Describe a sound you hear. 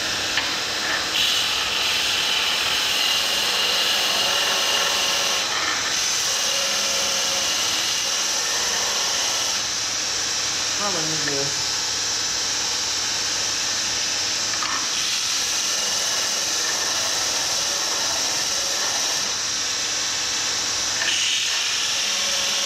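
A bench grinder whirs steadily.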